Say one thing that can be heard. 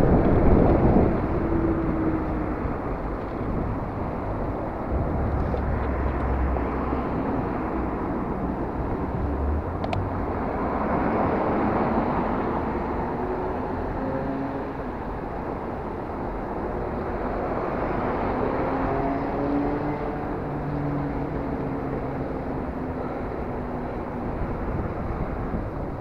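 Wind rumbles steadily past a moving microphone outdoors.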